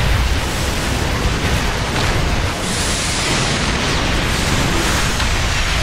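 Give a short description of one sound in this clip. Energy weapons fire and explosions boom in a space battle.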